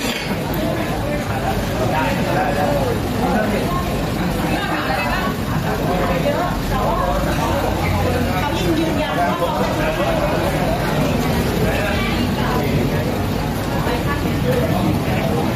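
A crowd of men and women talk and call out over each other close by, outdoors.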